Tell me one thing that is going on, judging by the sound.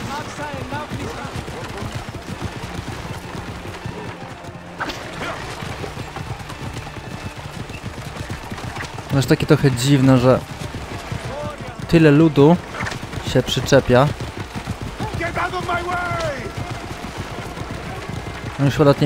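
Horse hooves clop steadily on stone paving.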